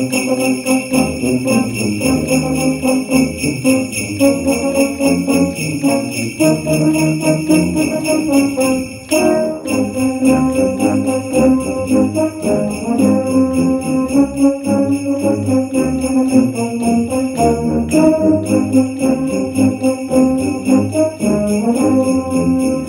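A brass ensemble of tubas and horns plays a lively tune together.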